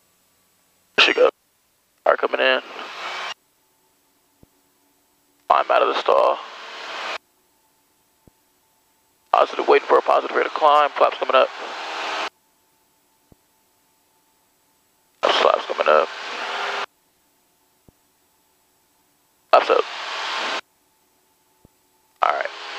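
A young man speaks in short bursts over a headset radio.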